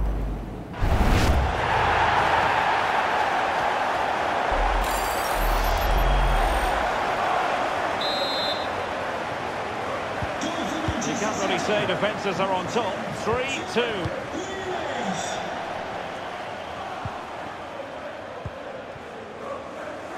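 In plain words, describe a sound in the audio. A large stadium crowd roars and cheers loudly, then slowly quietens.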